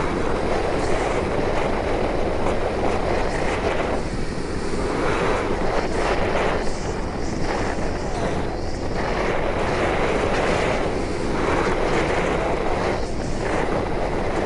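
Strong wind roars and buffets steadily as a vehicle speeds along.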